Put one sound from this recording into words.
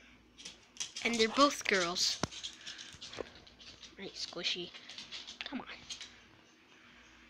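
A dog barks and howls loudly nearby.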